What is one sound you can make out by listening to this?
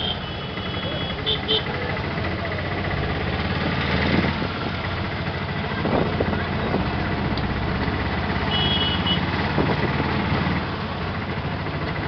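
An engine rattles and drones steadily while a vehicle moves.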